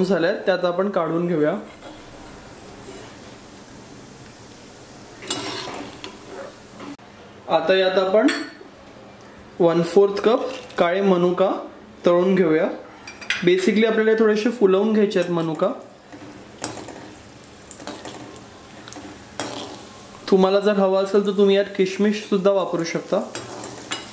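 A metal ladle scrapes against a metal pan.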